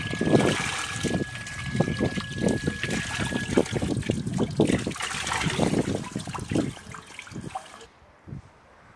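Water runs from a tap and splashes into a bowl.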